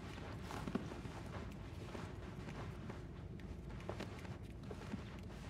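Light footsteps patter across a wooden floor.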